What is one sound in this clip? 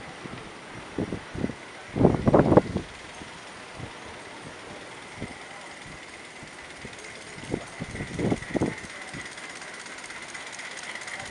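A small steam engine puffs and chuffs as it draws closer.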